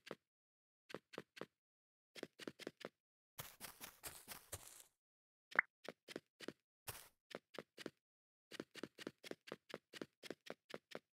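Footsteps tap quickly on wooden boards.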